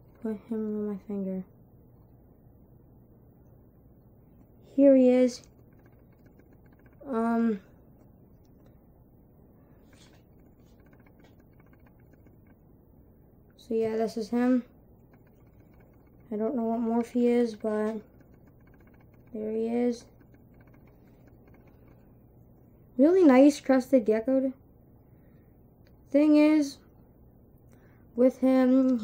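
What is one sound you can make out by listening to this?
A boy speaks close by in short bursts, calmly.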